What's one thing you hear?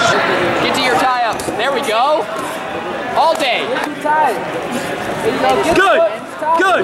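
Wrestling shoes squeak on a mat.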